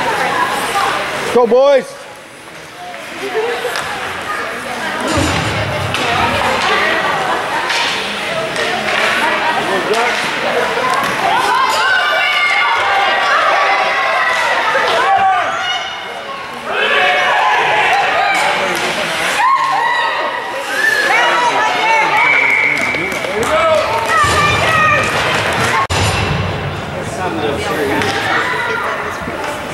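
Skates scrape and glide across the ice.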